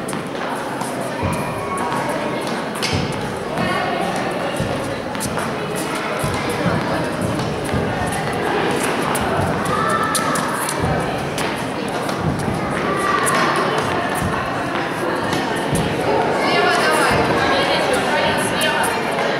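Tennis balls bounce and get struck by rackets in a large echoing hall.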